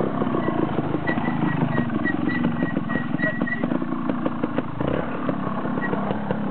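A small motorcycle engine putters and revs nearby.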